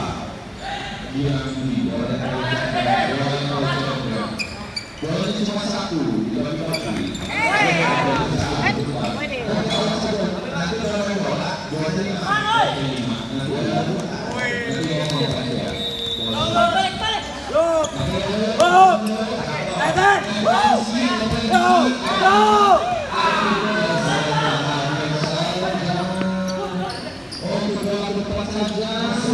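A crowd of young men shouts and cheers in a large echoing hall.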